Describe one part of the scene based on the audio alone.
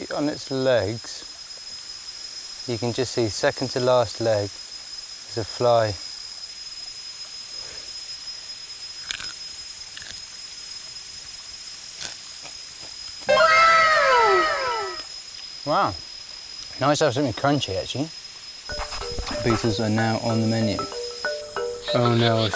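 A man speaks close up, with animation.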